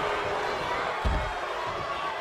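A body crashes down with a loud thump.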